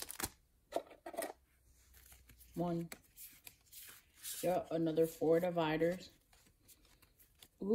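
Playing cards rustle and slide against each other close by.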